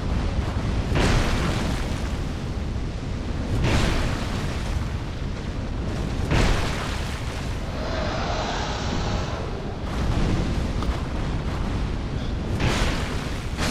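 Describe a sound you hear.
Heavy weapon blows land with loud thuds.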